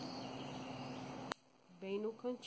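Pliers snip through thin wire with a sharp click.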